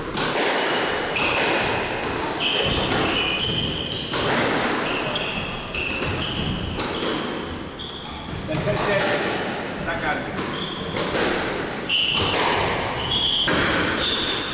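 A squash ball smacks against the walls and rackets in an echoing court.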